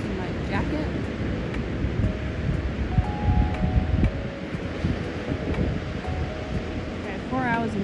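Wind blows across the open beach.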